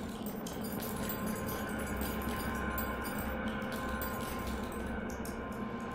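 Footsteps patter softly on sand.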